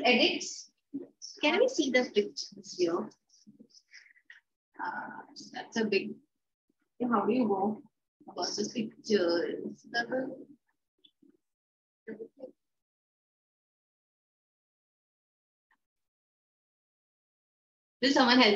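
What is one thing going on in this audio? A woman speaks calmly and clearly close by, as if teaching, with pauses between phrases.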